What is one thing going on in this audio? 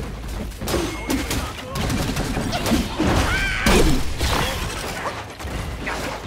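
A staff strikes a creature with heavy impacts.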